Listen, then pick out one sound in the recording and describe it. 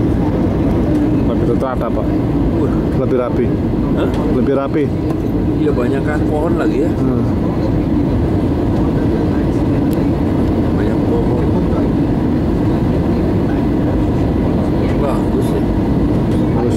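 A jet airliner's engines roar steadily inside the cabin.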